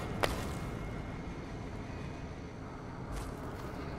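A heavy body thuds onto wooden floorboards.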